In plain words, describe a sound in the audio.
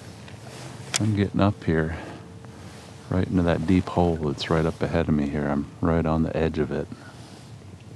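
A man talks calmly, close by.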